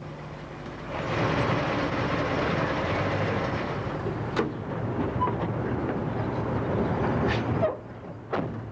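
A car engine runs steadily, then shuts off.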